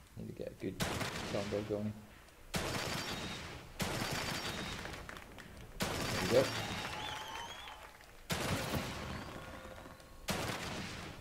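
Gunshots boom loudly every second or two, each one echoing away.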